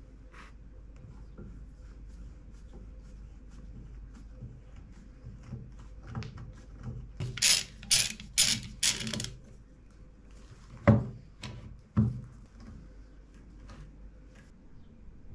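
Metal bar clamps clack and rattle as they are tightened.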